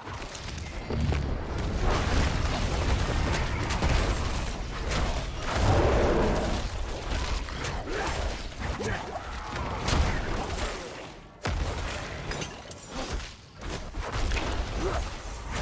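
Game monsters growl and shriek as they are hit.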